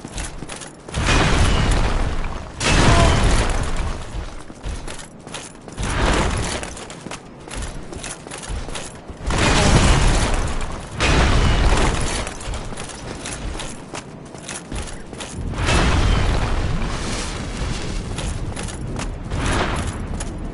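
Heavy metal weapons clang and strike in a fight.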